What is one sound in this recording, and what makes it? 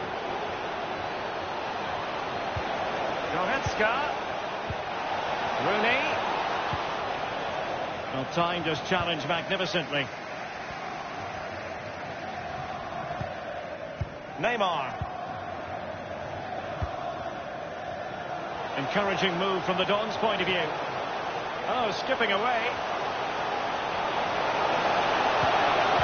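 A large stadium crowd roars and chants steadily throughout.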